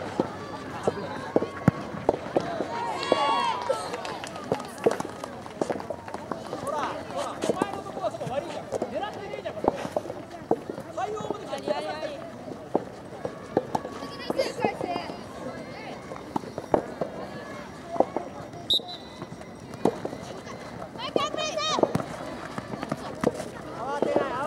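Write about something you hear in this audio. Young players shout and call out to each other across an open field.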